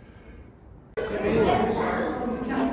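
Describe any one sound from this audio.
A crowd of adults chatters loudly in a large echoing hall.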